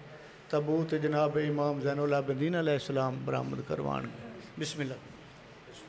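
An elderly man chants loudly through a microphone, with echo.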